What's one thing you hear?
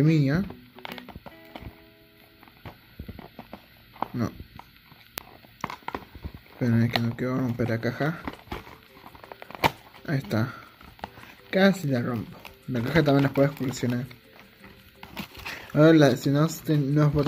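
Cardboard rustles and taps softly as a small box is turned in the hands.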